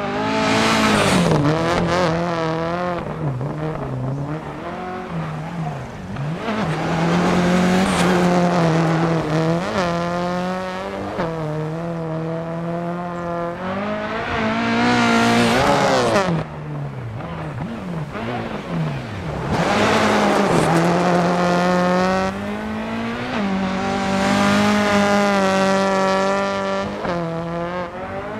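A rally car engine revs high and drops as the car shifts gears.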